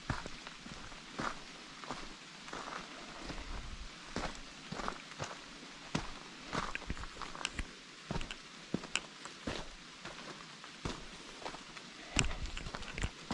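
Footsteps crunch on a rocky dirt trail.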